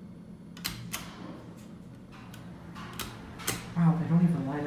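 Elevator buttons click as they are pressed.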